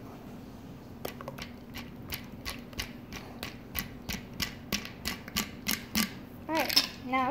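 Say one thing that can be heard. Ice rattles rhythmically in a cocktail shaker.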